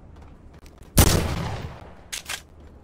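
A gunshot rings out loudly with a short echo.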